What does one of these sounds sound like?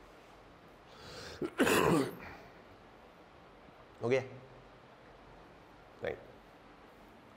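A middle-aged man speaks in short bursts, with long pauses between.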